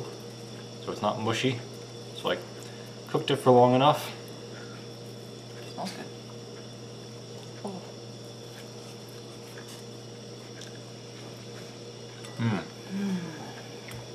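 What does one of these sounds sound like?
Forks scrape and clink against a plate.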